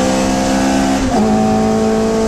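A gear change briefly cuts the engine.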